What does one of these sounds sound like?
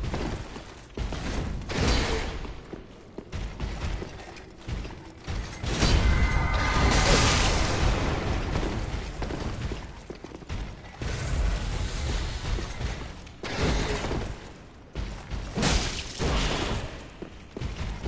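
Swords clash and swing through the air.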